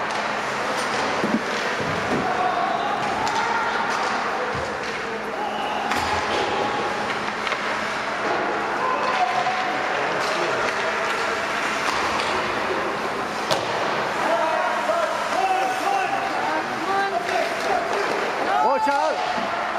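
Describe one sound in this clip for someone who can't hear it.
Skates scrape and glide across ice in a large echoing rink.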